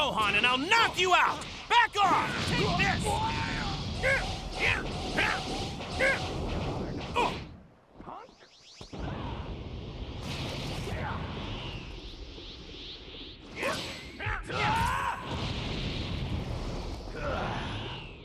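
Heavy punches thud and crack.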